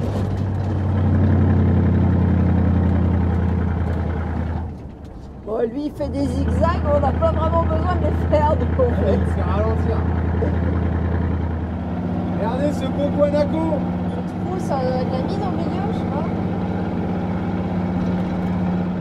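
Tyres rumble over a gravel road.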